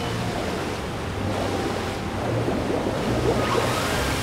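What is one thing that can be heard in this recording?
Water rushes and sprays loudly.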